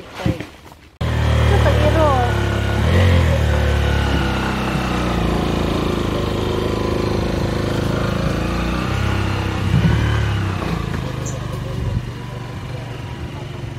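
A motorcycle engine idles and rumbles steadily.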